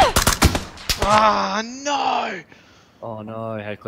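A young man exclaims loudly into a microphone.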